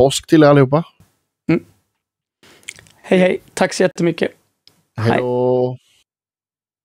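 A young man speaks cheerfully over an online call.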